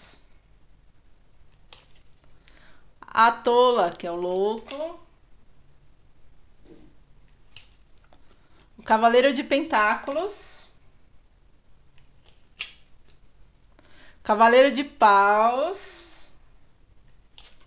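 Playing cards slide and tap softly on a hard table.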